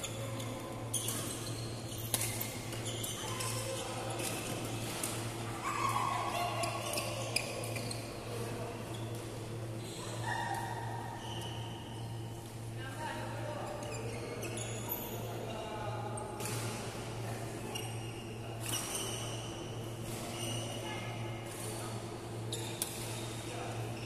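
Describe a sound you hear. Shuttlecocks are hit with rackets, with sharp taps echoing in a large hall.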